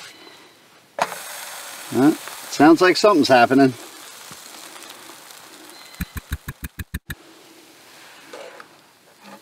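Bread sizzles in a hot frying pan.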